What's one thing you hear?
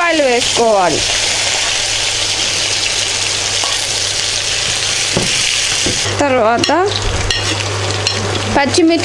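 Food sizzles loudly in hot oil.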